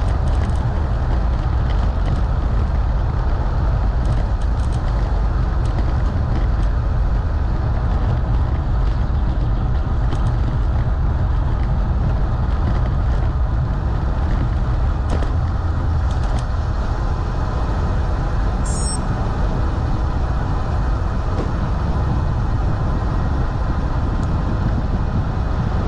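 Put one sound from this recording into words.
Wind rumbles and buffets steadily against the microphone outdoors.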